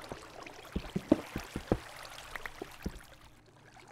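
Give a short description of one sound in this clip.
A pickaxe chips at stone with quick, dry knocks.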